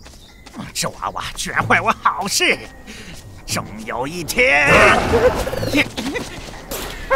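A cartoon creature shouts loudly.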